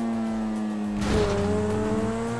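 A car thuds as it lands on a ramp.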